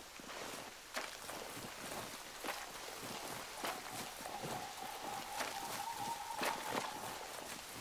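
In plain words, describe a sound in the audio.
Sharp bangs burst now and then from the fire.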